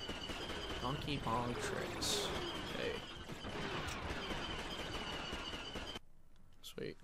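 Laser blasters fire in a noisy battle.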